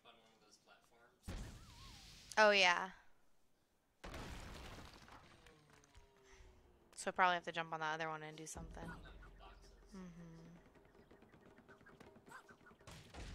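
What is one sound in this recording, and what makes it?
A young woman talks into a microphone.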